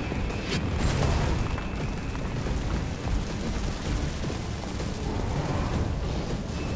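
Fires crackle and roar steadily.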